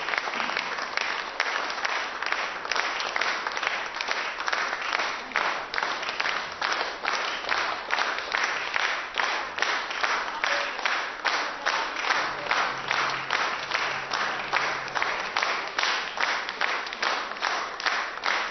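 An audience claps in rhythmic unison in a large, echoing hall.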